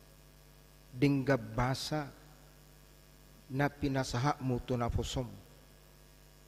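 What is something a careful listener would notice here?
A man preaches calmly through a microphone.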